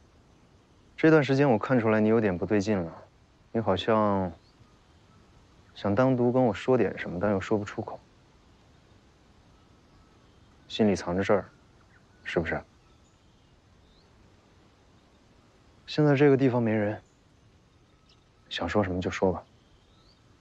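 A man speaks calmly and quietly close by, in short phrases with pauses.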